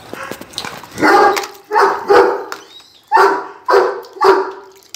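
A large dog barks loudly several times.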